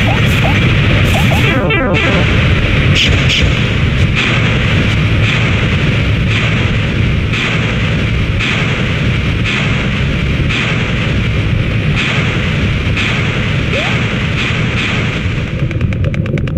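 Fireballs whoosh past in a steady, pulsing rhythm.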